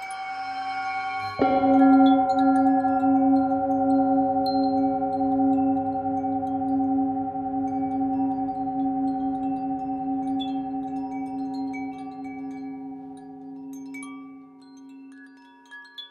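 A singing bowl is struck with a mallet and rings with a long, wavering hum that slowly fades.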